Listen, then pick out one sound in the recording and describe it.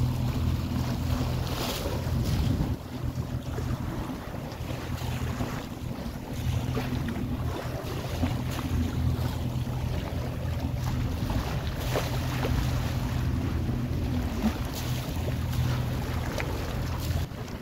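Water splashes and rushes against a sailing boat's hull.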